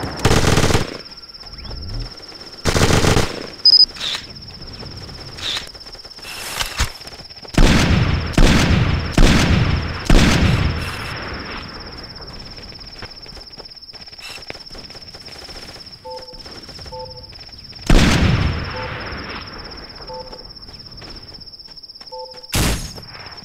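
Loud gunshots crack out one after another, each followed by a rolling echo.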